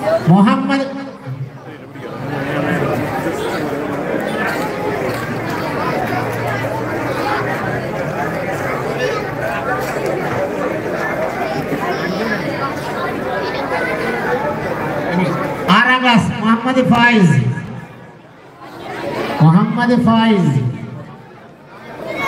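A man speaks loudly through a loudspeaker in bursts.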